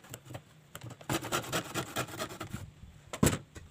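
A hand saw rasps back and forth through wood.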